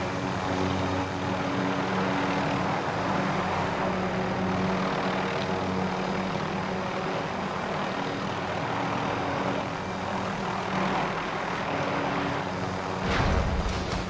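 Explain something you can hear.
A helicopter's rotor thrums loudly and steadily.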